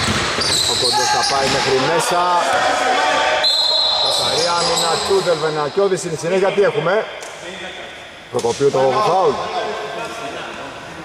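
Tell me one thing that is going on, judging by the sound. Sneakers squeak sharply on a floor in an echoing hall.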